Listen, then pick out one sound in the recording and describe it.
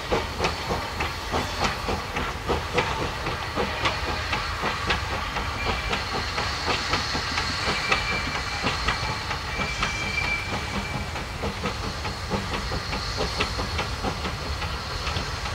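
A steam locomotive chuffs rhythmically as it approaches.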